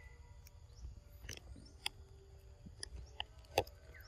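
A monkey rustles through leaves and grass as it walks past close by.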